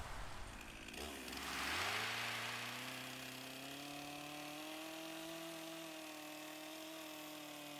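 A chainsaw engine revs up and runs steadily while cutting wood.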